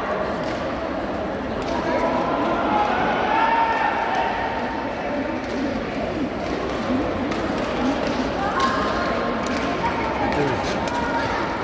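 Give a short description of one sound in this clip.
Many people chatter and call out in a large echoing hall.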